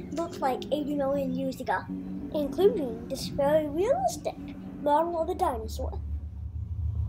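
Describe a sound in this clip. A young child talks with animation nearby.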